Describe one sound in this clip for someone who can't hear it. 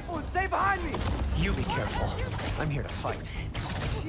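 A magical blast crackles and whooshes.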